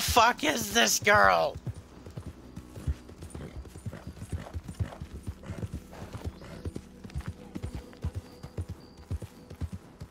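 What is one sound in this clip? A horse gallops with hooves thudding on a dirt path.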